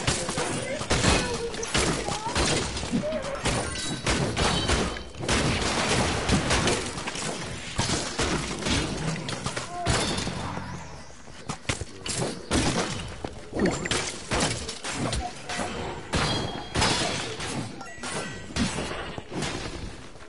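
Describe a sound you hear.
Weapons strike skeletons in a video game with rapid thuds and clangs.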